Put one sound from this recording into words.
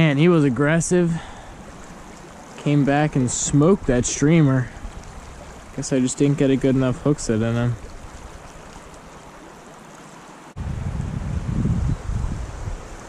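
A shallow stream flows and ripples softly.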